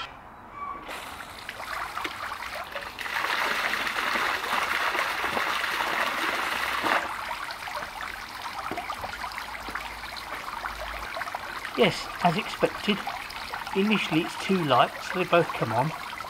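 A fountain sprays and splashes into a pond.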